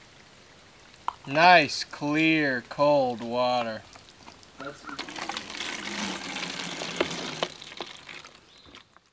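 Water trickles into a plastic bottle.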